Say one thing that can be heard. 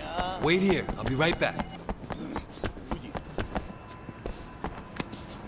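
Footsteps run on hard pavement.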